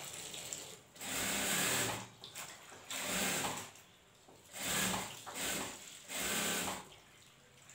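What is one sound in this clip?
A sewing machine runs in short, whirring bursts.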